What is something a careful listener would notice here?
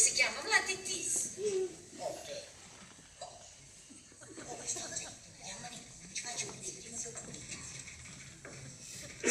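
Two women talk with animation, heard from a distance in an echoing hall.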